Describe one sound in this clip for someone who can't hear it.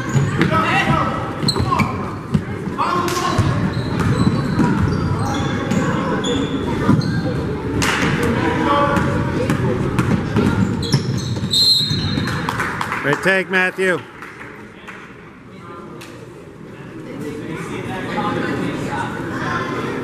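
A crowd of spectators chatters and calls out.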